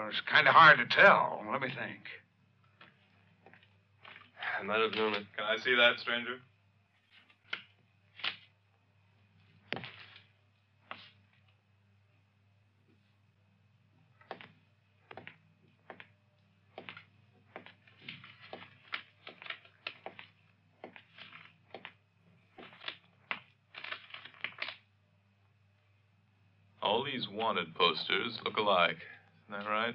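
A man speaks firmly and closely.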